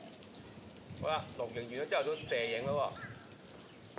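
A man speaks briefly and calmly nearby, outdoors.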